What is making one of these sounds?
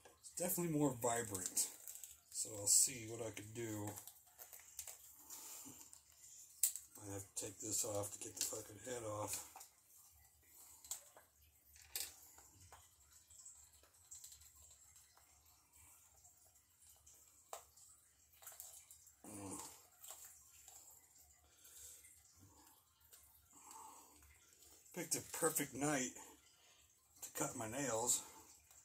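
Plastic parts click and rustle as a toy figure is handled.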